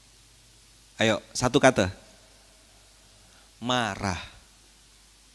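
A young man speaks with animation into a microphone.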